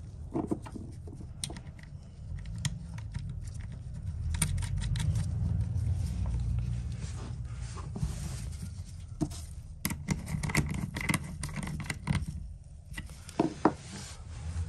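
Rubber gloves rustle and squeak against plastic.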